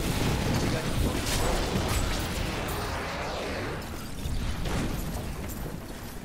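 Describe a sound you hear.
Game spells blast and crackle in loud bursts, then die down.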